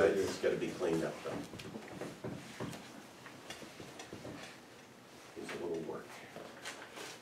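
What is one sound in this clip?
An elderly man speaks calmly, slightly distant.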